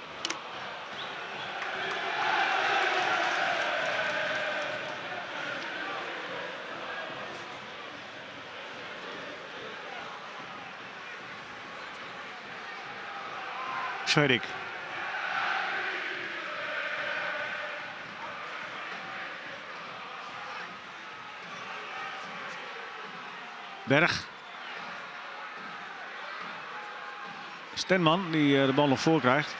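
A large stadium crowd chants and cheers.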